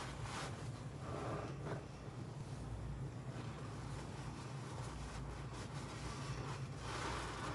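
Wet foam squelches and crackles up close.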